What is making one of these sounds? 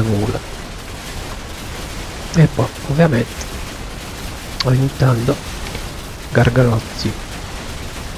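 A man talks into a microphone in short bursts.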